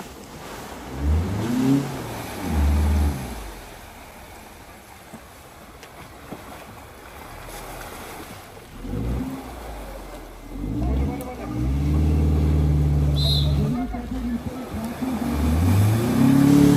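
An off-road vehicle's engine revs hard in bursts, rising and falling.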